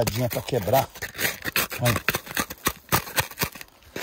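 Loose dirt pours and patters onto the ground.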